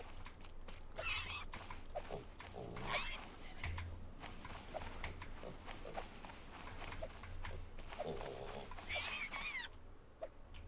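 A small wild pig squeals shrilly.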